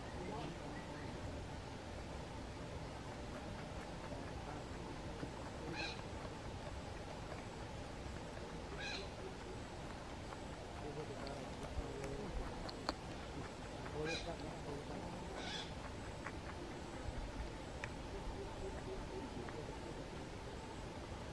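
A rabbit nibbles and crunches on fresh grass close by.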